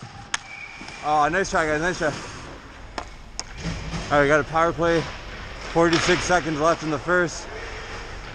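Young men shout to each other across the rink.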